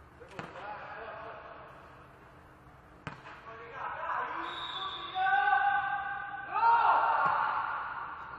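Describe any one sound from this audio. A volleyball is struck with sharp slaps that echo in a large hall.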